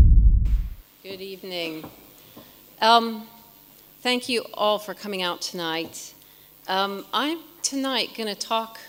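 A woman speaks calmly into a microphone in a large hall.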